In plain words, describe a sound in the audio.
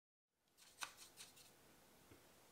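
A paintbrush taps and swirls in a watercolour palette.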